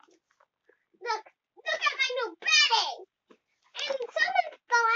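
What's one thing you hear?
A young girl talks excitedly in a high voice close by.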